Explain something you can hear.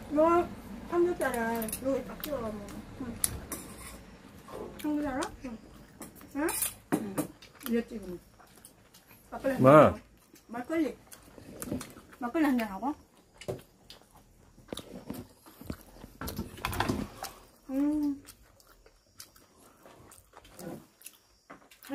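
Chopsticks and cutlery clink against dishes.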